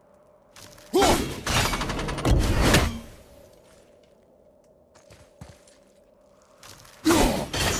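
An axe whooshes through the air and strikes with a loud crash.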